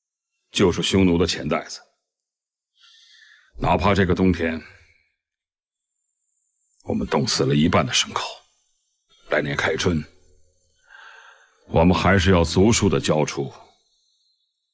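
A man speaks calmly and firmly, close by, in short phrases with pauses.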